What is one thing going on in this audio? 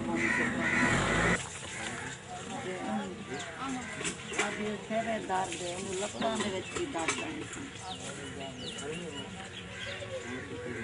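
A crowd of men, women and children chatter nearby outdoors.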